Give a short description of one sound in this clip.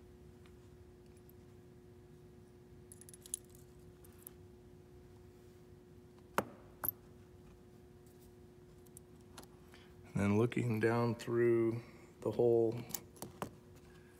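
Metal pliers click against a small metal part.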